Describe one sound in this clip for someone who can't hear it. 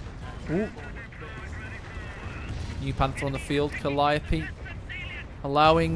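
Explosions and gunfire rumble in the distance.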